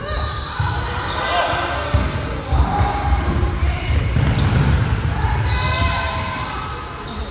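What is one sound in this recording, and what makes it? Sneakers squeak on a wooden floor in a large echoing hall.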